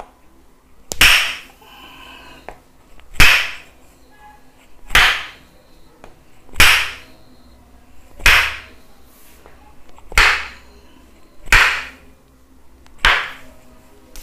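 A wooden paddle thumps loudly on a bare back at a slow, steady pace.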